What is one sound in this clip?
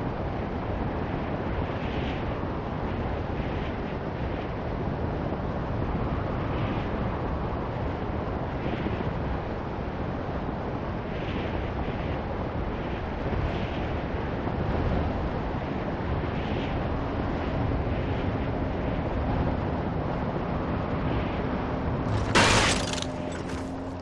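Wind rushes loudly and steadily.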